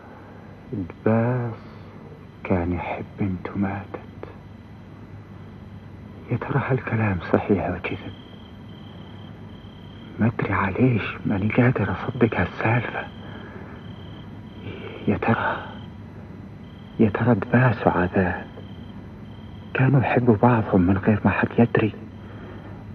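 A man speaks slowly in short bursts with long pauses.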